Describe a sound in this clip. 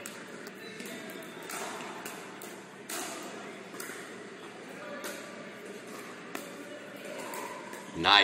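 Paddles pop against a plastic ball in a large echoing hall.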